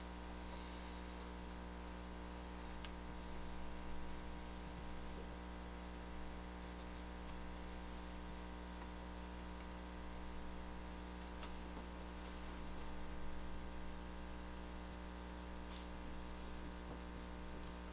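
A tool scrapes and rubs softly over a stone slab.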